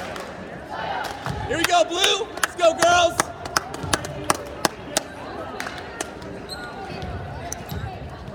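Young women players shout and call out to each other in an echoing hall.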